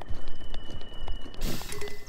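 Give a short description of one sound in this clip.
A wooden branch breaks with a sharp crack.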